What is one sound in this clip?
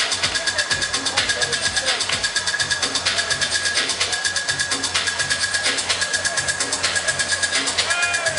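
Loud electronic dance music with a fast, pounding beat plays over big loudspeakers in a large, echoing hall.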